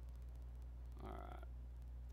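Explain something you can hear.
A man speaks briefly into a headset microphone.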